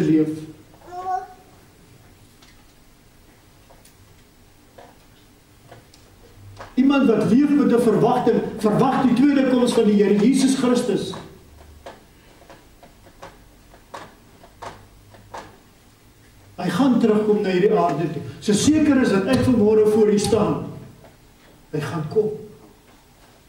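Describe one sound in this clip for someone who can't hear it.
An elderly man preaches forcefully through a microphone in a reverberant hall, with long pauses.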